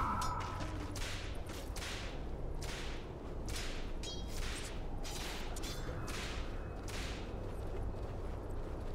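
Magic spell effects whoosh and hiss in quick bursts.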